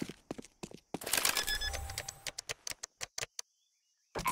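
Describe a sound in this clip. A bomb's keypad beeps as it is armed.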